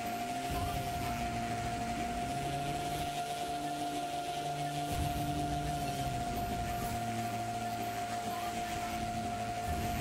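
A propeller plane's engine drones steadily close by.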